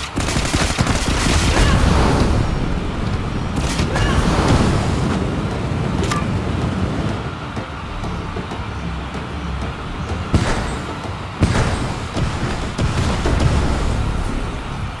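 Game music plays steadily with a heavy beat.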